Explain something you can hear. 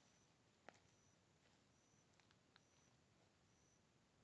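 Footsteps crunch on dry sandy ground.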